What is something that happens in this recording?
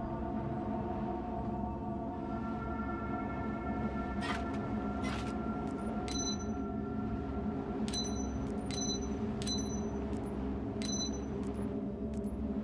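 Low, droning game music plays steadily.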